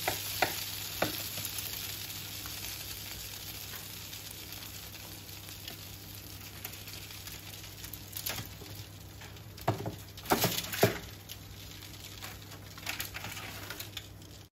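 A metal fork and a wooden spatula scrape on foil and meat.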